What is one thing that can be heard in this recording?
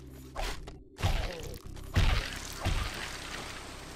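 Heavy blows land with deep, booming thuds.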